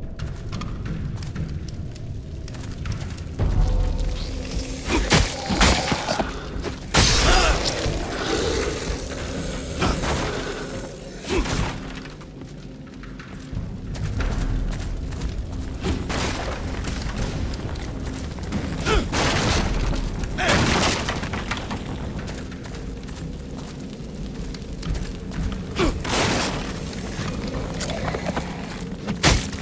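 Armoured footsteps clank on stone in a reverberant space.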